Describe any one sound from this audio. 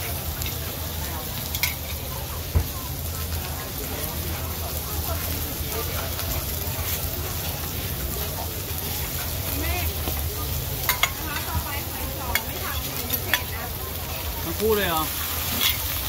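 Oil sizzles on a hot griddle.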